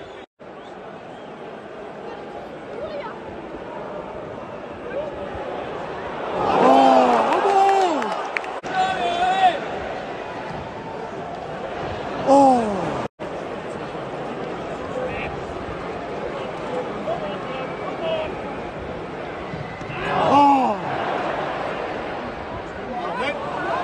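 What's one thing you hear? A large crowd murmurs and roars steadily in an open stadium.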